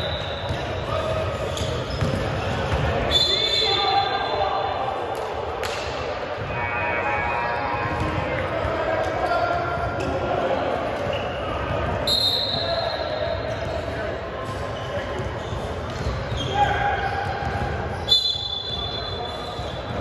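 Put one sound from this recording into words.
Players shout and call out to each other across the gym.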